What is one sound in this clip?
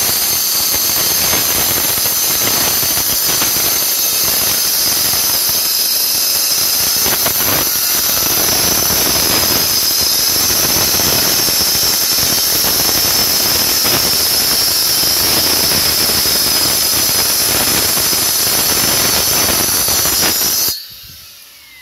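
A petrol cut-off saw screams loudly as it cuts through stone.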